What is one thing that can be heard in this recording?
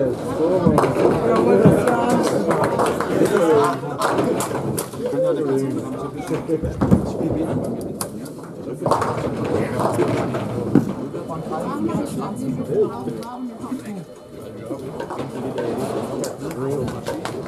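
Several men talk at once nearby in an echoing hall.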